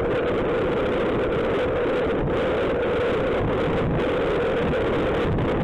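A motor scooter engine hums steadily.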